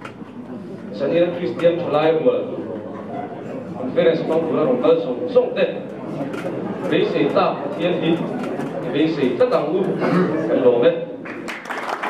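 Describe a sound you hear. A young woman speaks calmly into a microphone, heard over loudspeakers in an echoing hall.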